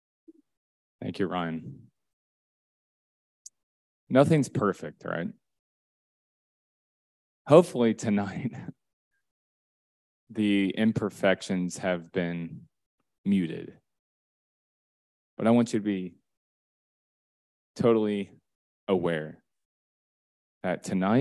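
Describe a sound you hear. A young man speaks through a microphone with pauses, heard over an online call.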